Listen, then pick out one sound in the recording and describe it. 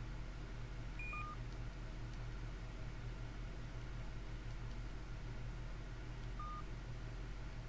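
An electronic game tone beeps briefly.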